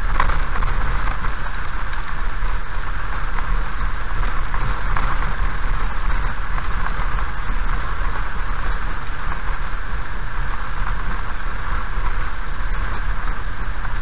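A car drives slowly along a wet road with a steady low rumble.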